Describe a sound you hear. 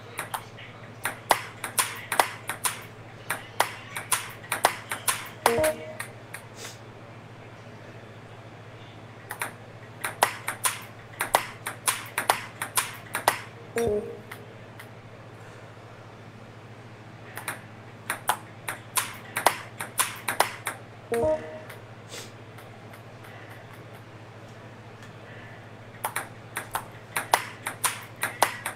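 A ping-pong ball clicks rapidly back and forth off paddles and a table.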